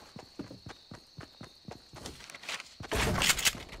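Footsteps patter quickly on grass.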